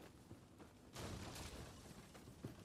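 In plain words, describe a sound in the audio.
A burst of flame roars up suddenly.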